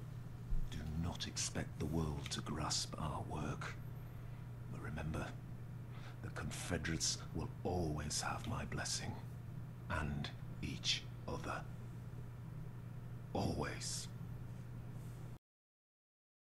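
A young man talks into a microphone close by, with pauses.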